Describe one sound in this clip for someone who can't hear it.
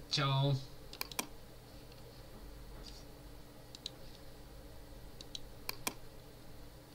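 A computer mouse clicks a few times.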